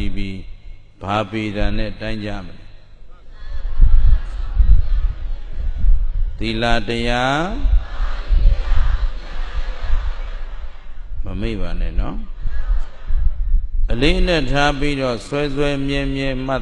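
A man speaks slowly and calmly into a microphone, in bursts with pauses.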